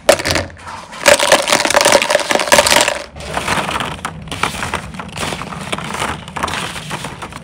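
Plastic balls rattle and clatter against each other.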